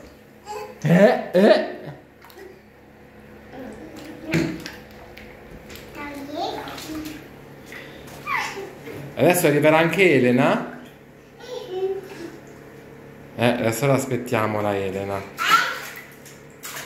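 Young toddlers babble and squeal close by.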